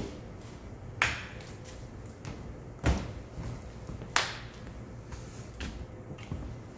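Footsteps scuff across a hard floor.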